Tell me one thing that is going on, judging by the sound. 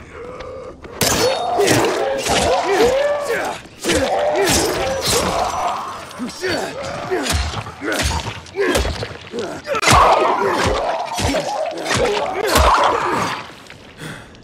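Heavy blows strike flesh with wet thuds.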